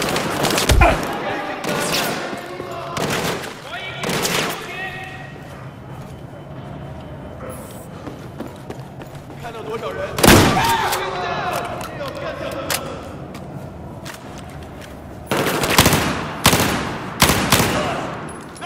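Gunshots fire in loud bursts, echoing off hard walls.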